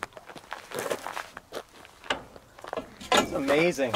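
A metal bar clanks against metal.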